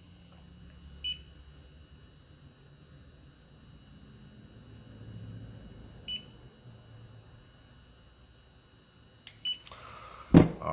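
An electronic curing light beeps briefly now and then.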